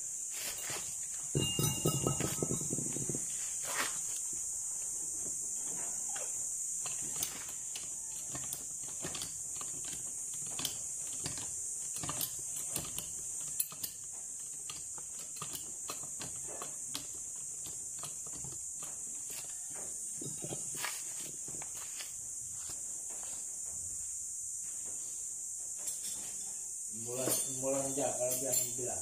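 Light metal clicks and knocks sound from a scooter's front end.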